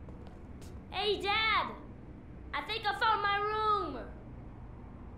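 A young boy calls out excitedly from a distance.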